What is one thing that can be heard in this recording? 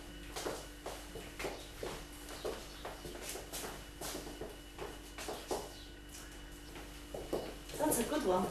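Shoes tap and scuff rhythmically on a hard floor.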